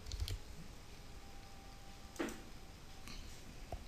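A computer mouse clicks once.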